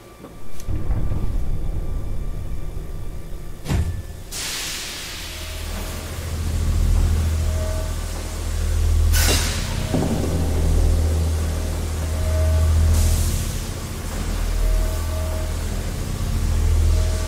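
Footsteps walk slowly along a hard floor.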